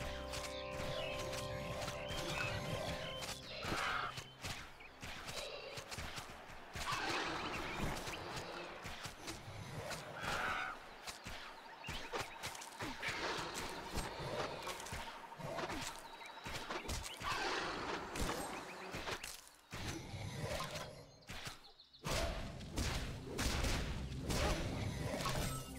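Weapon blows strike in a fast fight.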